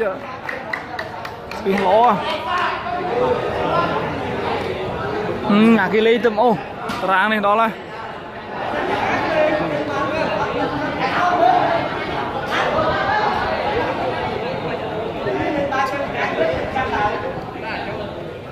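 A large crowd chatters and shouts in a big echoing hall.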